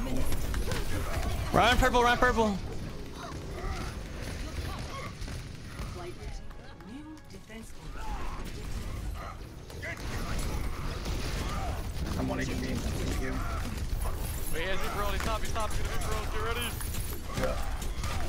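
Gunfire and blasts from a video game rattle steadily.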